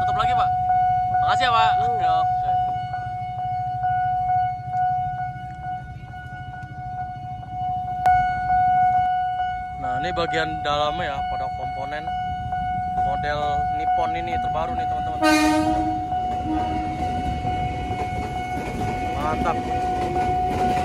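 A railway crossing bell rings steadily and loudly.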